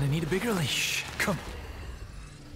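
A man speaks with a taunting tone, close by.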